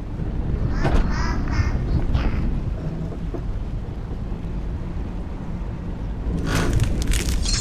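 An elevator hums and rumbles low and steadily.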